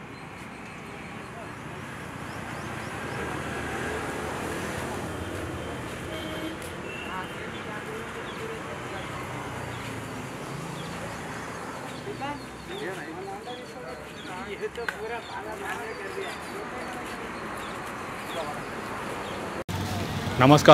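A crowd murmurs faintly outdoors.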